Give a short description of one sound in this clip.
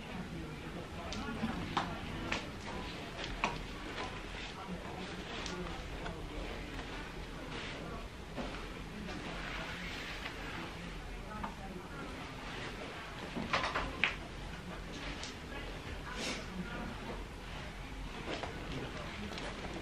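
High heels tap softly on a carpeted floor.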